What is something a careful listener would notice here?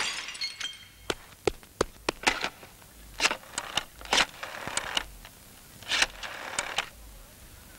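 A telephone dial clicks.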